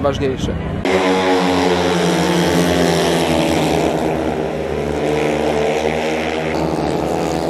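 Motorcycle engines roar loudly as the bikes race past.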